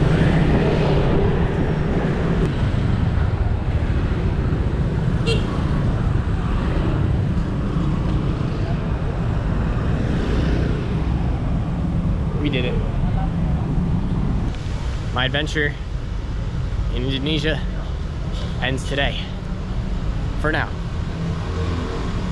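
Traffic rumbles steadily in the street outdoors.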